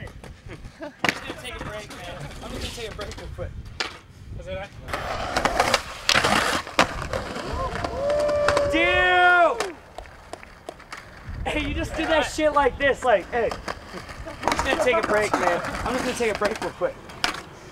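Skateboard wheels roll and clack on concrete.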